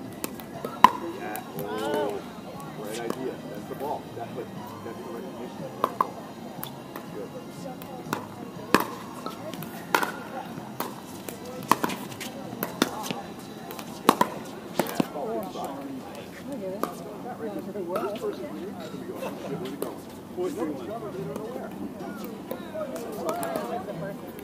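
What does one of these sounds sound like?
Paddles strike a plastic ball with sharp pops.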